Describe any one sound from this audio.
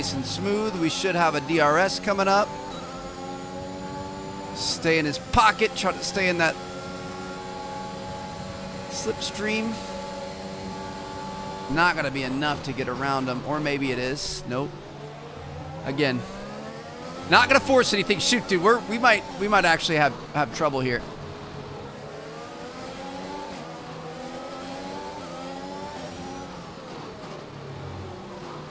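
A racing car engine whines loudly, rising and falling as it shifts gears.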